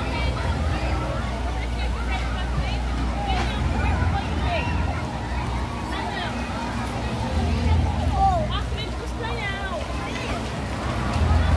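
Water splashes underfoot as people wade through shallow water.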